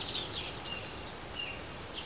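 Wings flutter as a small bird flies off.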